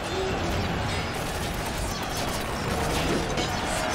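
Swords clash in a brief skirmish.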